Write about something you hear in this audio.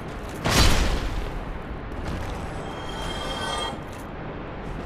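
Bones rattle and clatter as a skeleton falls apart.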